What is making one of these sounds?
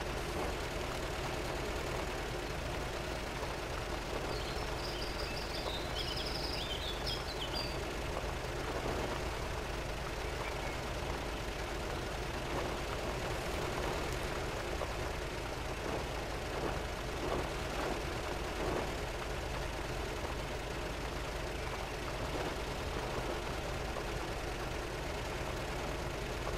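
An off-road engine hums steadily as a vehicle crawls along.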